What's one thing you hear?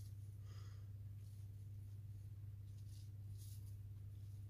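Dried petals rustle softly as they are sprinkled.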